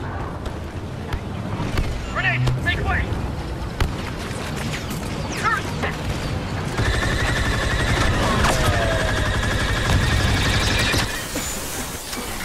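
Blaster shots crack and zap repeatedly.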